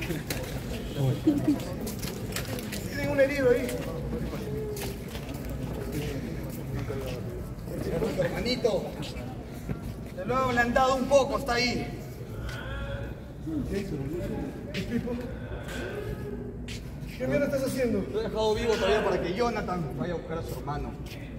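Young men talk nearby in a large echoing hall.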